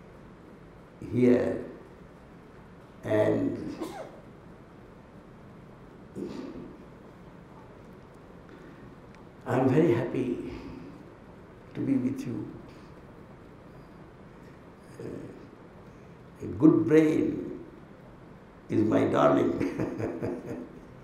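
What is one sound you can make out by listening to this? An elderly man speaks calmly into a microphone in short bursts with pauses.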